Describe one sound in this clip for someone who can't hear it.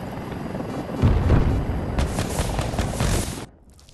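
A mounted minigun fires in rapid bursts.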